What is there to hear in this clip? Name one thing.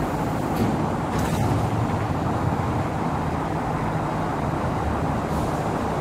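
A train rumbles as it begins to pull away.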